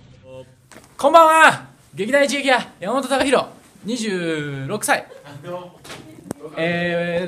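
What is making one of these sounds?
A young man sings loudly and playfully up close.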